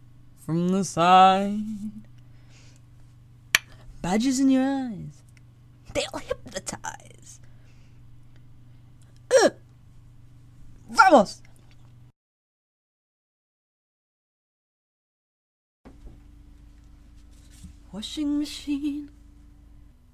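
A young woman sings short vocal phrases close into a microphone, with pauses between them.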